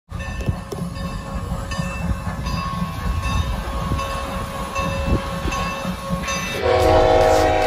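A steam locomotive chugs and rumbles nearby.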